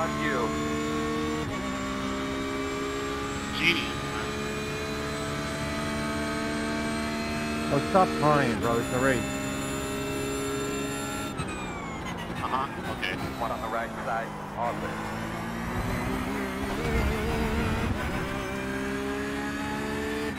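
A racing car engine roars at high revs, shifting gears as it speeds up and brakes.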